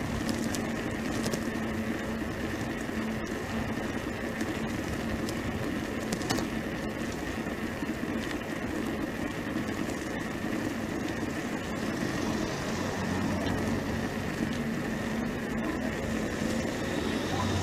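Wind rushes and buffets past while moving along a road.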